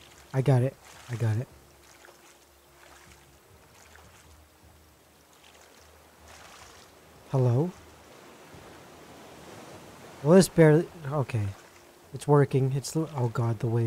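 A paddle splashes through water in slow strokes.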